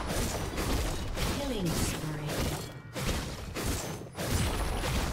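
Game spells blast and weapons clash in a fast fight.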